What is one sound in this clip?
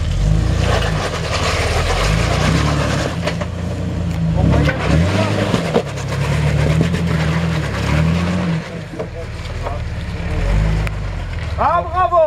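Tyres crunch and scrape over rocks.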